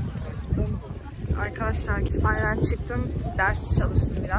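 A young woman talks animatedly close to the microphone.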